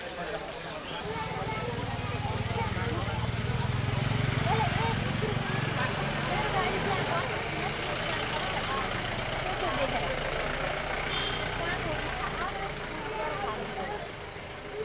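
A motorbike engine idles nearby.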